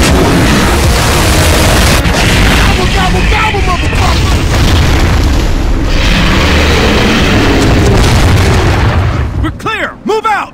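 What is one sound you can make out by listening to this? A huge fiery blast roars and rumbles loudly.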